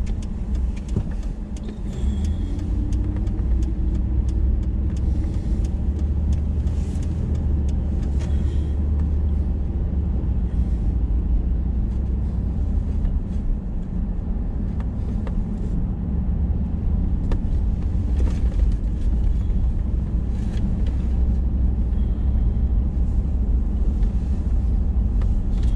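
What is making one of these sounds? A car engine hums steadily from close by.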